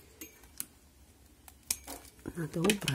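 Pruning shears snip once.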